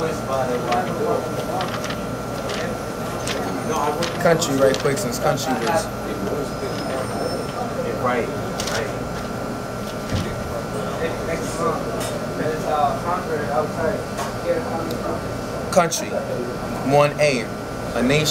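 A man reads aloud calmly, close by.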